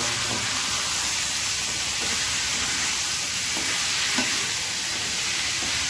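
A wooden spatula scrapes and knocks against a metal wok while stirring.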